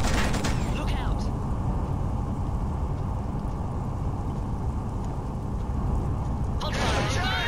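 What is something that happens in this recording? A heavy armoured vehicle's engine rumbles low and steady.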